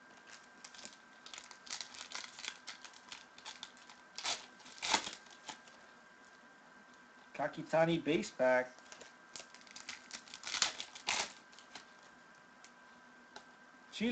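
Plastic foil wrappers crinkle and rustle as they are torn open.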